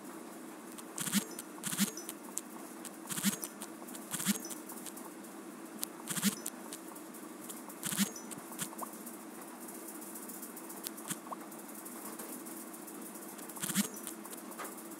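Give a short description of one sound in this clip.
Short electronic pops sound as game pieces are dropped into place.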